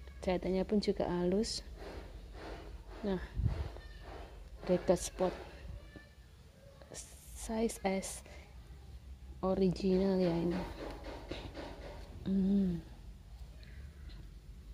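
Fabric rustles as hands handle a cloth garment.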